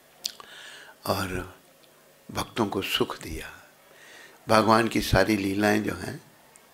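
An elderly man sings with feeling into a close microphone.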